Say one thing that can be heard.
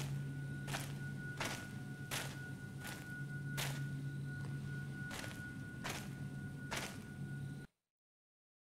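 Footsteps crunch slowly on a gravel path.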